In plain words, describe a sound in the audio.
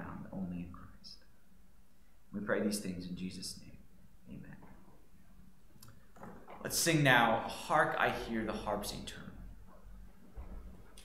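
A man speaks calmly in a room with a slight echo.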